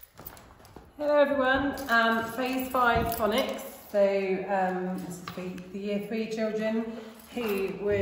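A woman speaks clearly and warmly close to a microphone.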